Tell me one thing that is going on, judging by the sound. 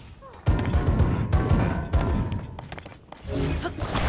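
A heavy boulder rumbles and crashes.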